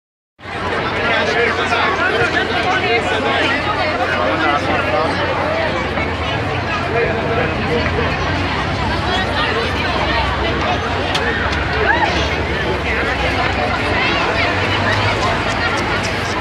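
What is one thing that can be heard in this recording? A large crowd of young men and women chatters loudly close by, outdoors.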